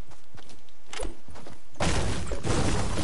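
A pickaxe chops into a tree with dull thuds.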